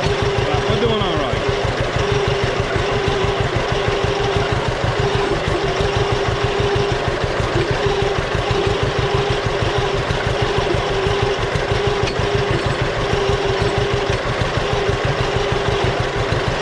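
A tractor engine chugs loudly and steadily up close.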